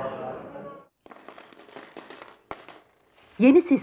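Metal coins clink as they are dropped onto a pile.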